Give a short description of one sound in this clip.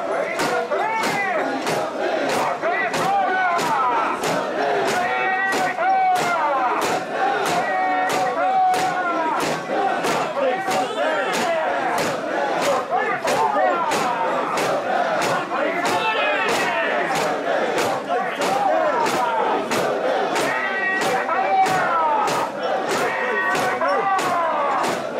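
A large crowd of men chants loudly and rhythmically, close by, outdoors.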